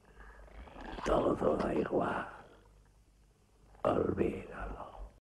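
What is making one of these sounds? An elderly man speaks slowly in a deep, weary voice, close by.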